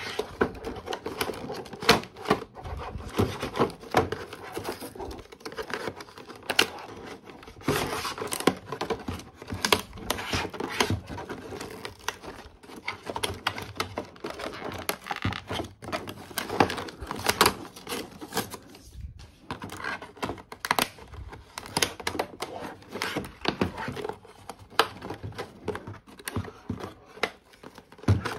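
Cardboard rips and tears.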